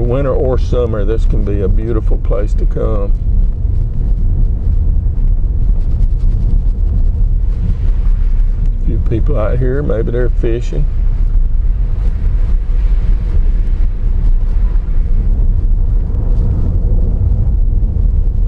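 Tyres roll over a rough road surface.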